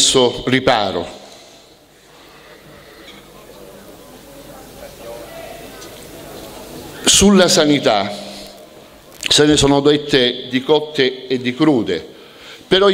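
A middle-aged man speaks with animation into a microphone, heard through loudspeakers outdoors with a slight echo.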